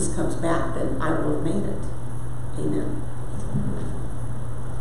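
An older woman speaks calmly into a microphone, heard through loudspeakers.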